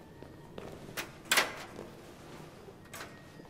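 The metal bars of a birdcage rattle with sharp clinks.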